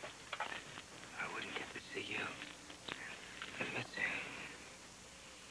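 A man speaks in a low voice nearby.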